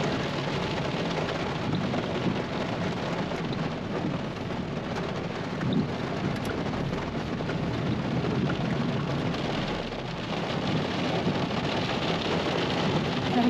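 Rain patters steadily on a car window.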